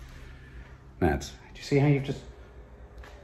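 A middle-aged man speaks briefly close by.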